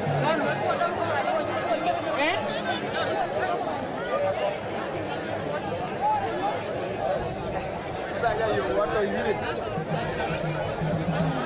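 A crowd of men and women chatters and murmurs nearby outdoors.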